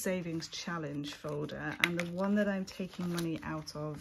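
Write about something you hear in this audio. Plastic sleeves crinkle as they are turned.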